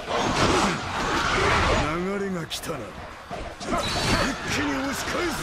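Blades clash and strike in a noisy battle.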